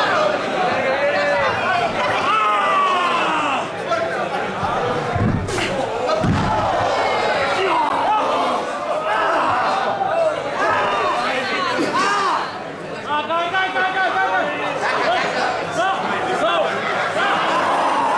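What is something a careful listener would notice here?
A crowd of men and women cheers and shouts in an echoing hall.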